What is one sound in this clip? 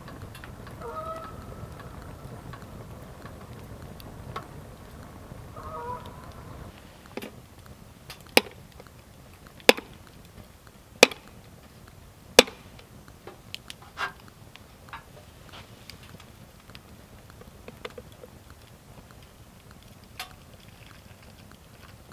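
A wood fire crackles and pops nearby.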